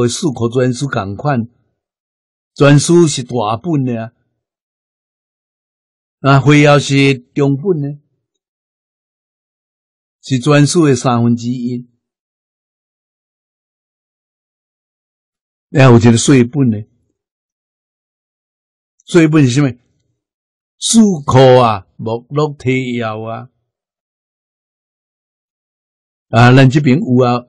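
An elderly man speaks calmly and slowly into a close microphone, in short phrases with long pauses.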